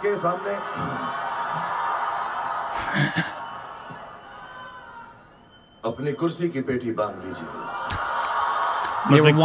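A large crowd cheers and applauds.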